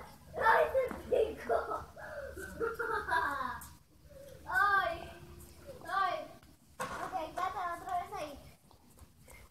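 A young girl talks with animation nearby.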